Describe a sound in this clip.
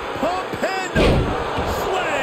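A body slams heavily onto a ring mat with a thud.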